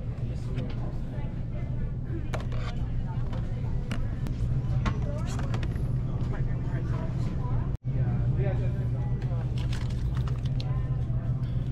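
A plastic bottle clatters as a hand takes it from a shelf.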